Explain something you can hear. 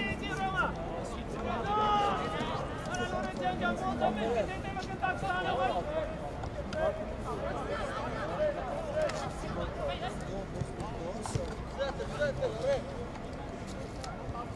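Young men shout and call to each other from across an open field outdoors.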